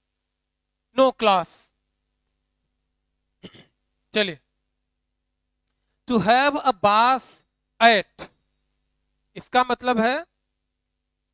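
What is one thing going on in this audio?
A man speaks clearly into a close microphone, in short bursts with pauses, like a teacher explaining.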